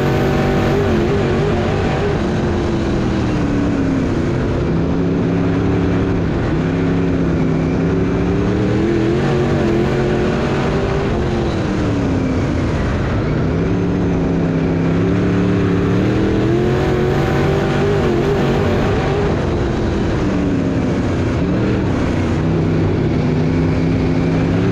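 A race car engine roars loudly close by, revving up and down through the turns.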